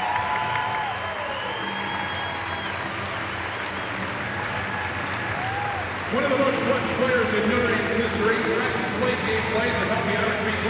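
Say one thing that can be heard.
A large crowd murmurs and chatters in an echoing arena.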